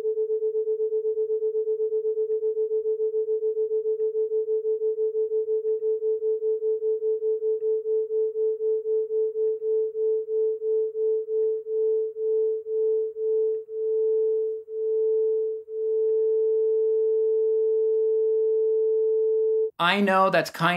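Two steady electronic tones beat against each other, the pulsing slowing until it becomes one smooth tone.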